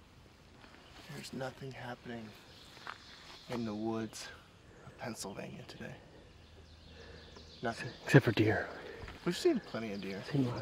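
A young man speaks calmly and close by, outdoors.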